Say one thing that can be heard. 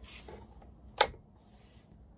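A switch clicks sharply.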